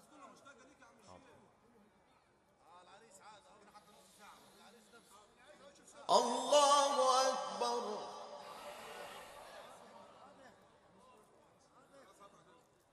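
A man chants in a long, drawn-out voice through a microphone and loudspeakers, swelling loudly and then fading.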